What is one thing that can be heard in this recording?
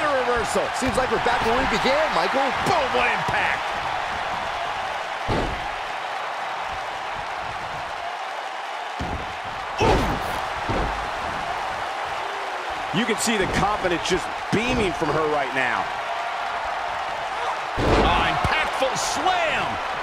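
A large crowd cheers and murmurs steadily in a big arena.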